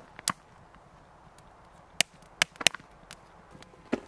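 Logs of firewood knock against a metal fire pit.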